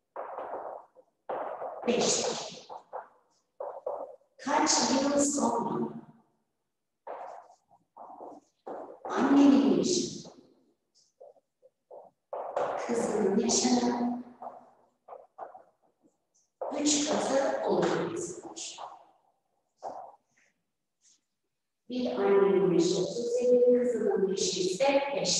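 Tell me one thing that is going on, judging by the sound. A young woman speaks slowly and clearly close by.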